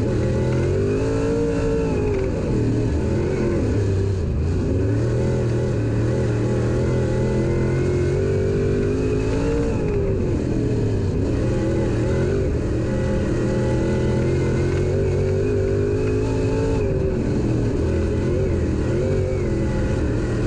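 A race car engine roars loudly up close, revving up and down through the turns.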